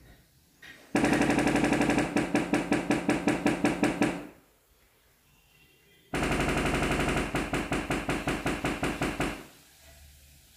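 Loudspeakers play rapid bursts of buzzing test tones that repeat in quick pulses.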